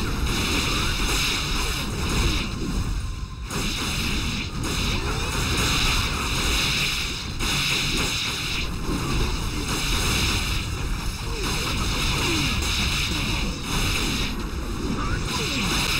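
Magic spell effects whoosh and crackle in a battle.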